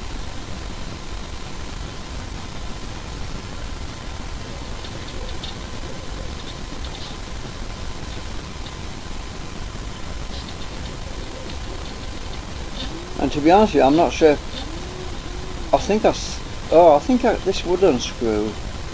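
Small pieces rattle softly inside a glass jar being turned.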